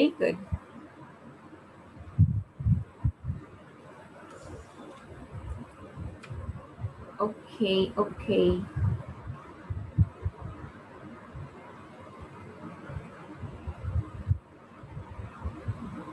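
A young woman speaks calmly into a microphone, heard as over an online call.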